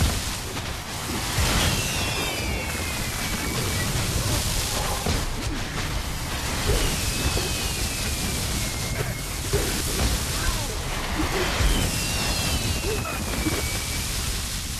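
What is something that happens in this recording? Blows and impacts thud again and again.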